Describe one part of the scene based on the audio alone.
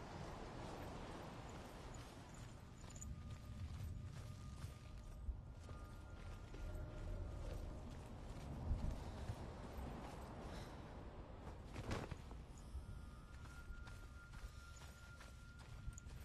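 Footsteps crunch on loose gravel and stones at a steady running pace.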